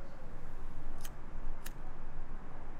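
A cigarette lighter clicks.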